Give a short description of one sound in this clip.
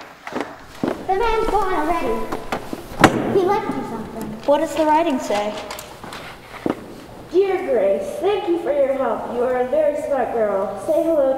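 A young girl speaks clearly and expressively.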